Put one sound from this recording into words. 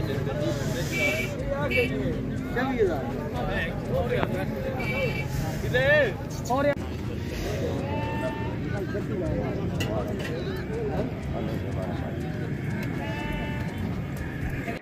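Goats bleat now and then.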